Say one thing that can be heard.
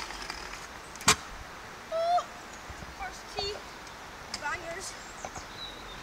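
Scooter wheels roll over rough pavement.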